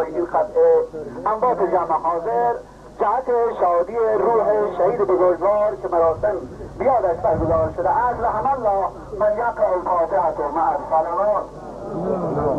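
A crowd of men chants loudly together outdoors.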